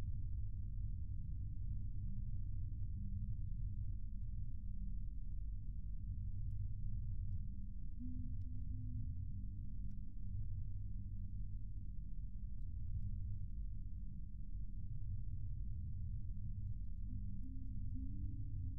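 Buttons click softly on a handheld game controller.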